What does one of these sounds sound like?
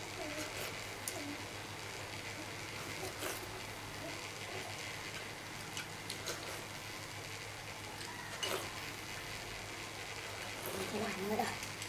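A man slurps soup noisily from a bowl.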